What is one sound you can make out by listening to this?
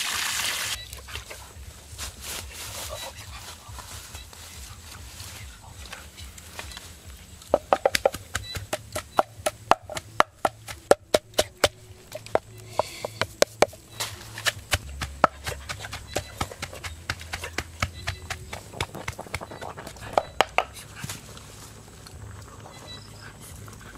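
Food bubbles and sizzles in a pan over a fire.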